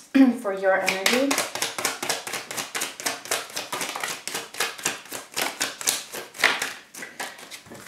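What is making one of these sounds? Playing cards are shuffled with quick, crisp rustling.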